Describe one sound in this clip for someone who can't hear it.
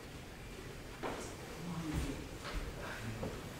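Footsteps knock on a wooden floor close by.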